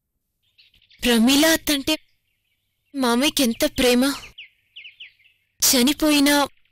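A young woman speaks nearby in a calm voice.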